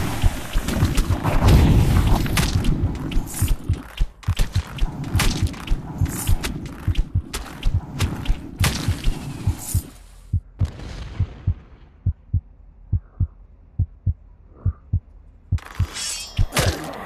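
A bowstring snaps as arrows are shot.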